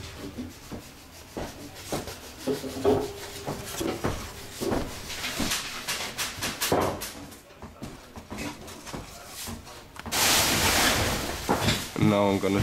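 Fingers rub and tap on a hollow wooden instrument body.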